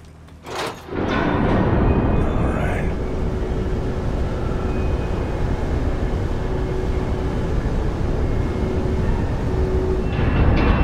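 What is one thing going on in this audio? A large fan spins up and roars steadily.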